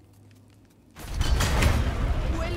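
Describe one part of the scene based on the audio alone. A thrown axe whooshes and strikes with a thud.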